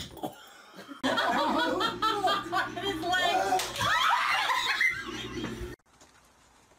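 A man laughs loudly nearby.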